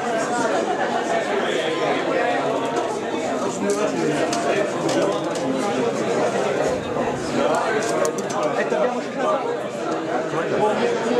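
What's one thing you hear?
A man speaks to an audience nearby.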